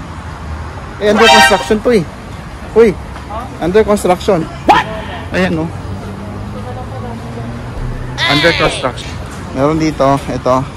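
A young man talks casually close to a phone microphone.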